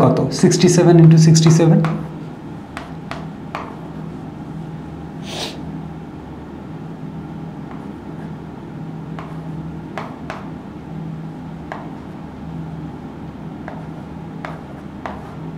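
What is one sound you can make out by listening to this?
A pen squeaks and taps while writing on a board.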